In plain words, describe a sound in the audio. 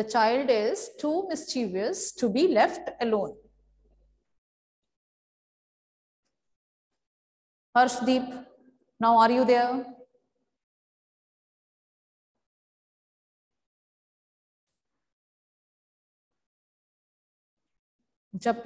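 A woman speaks calmly and clearly, close to the microphone, pausing between phrases.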